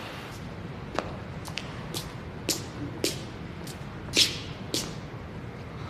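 Footsteps click sharply on a hard floor in an echoing space.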